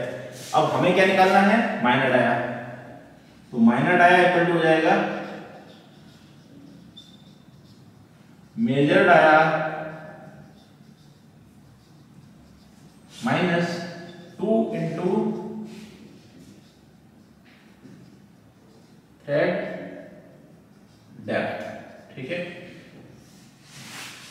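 A man speaks calmly in short bursts.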